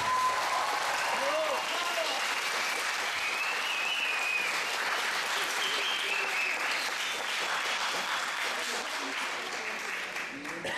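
Children call out in a large echoing hall.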